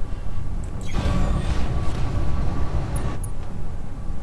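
Heavy metal footsteps of a large walking machine thud and clank.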